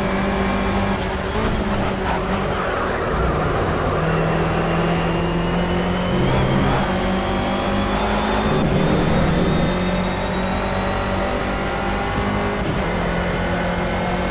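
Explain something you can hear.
A racing car engine roars steadily, rising and falling in pitch as the gears change.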